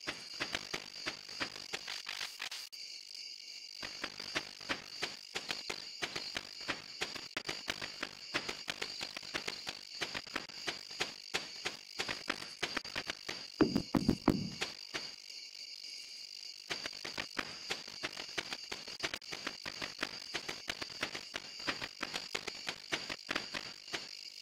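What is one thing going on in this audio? Quick footsteps patter along a dirt path.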